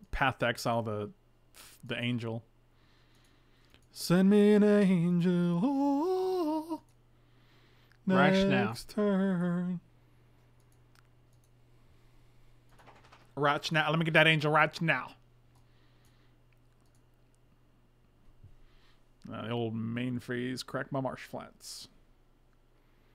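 A man talks with animation into a microphone, in short bursts.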